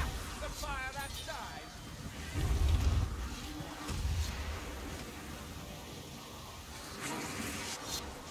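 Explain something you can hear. Lightning crackles and booms nearby.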